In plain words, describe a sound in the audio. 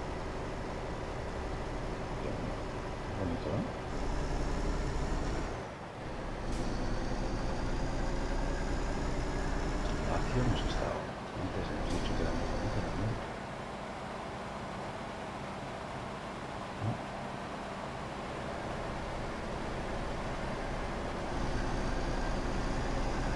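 A truck engine rumbles steadily as it drives along a road.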